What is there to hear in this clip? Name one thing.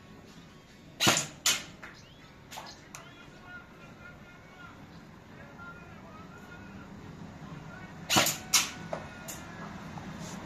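An airsoft rifle fires single sharp shots.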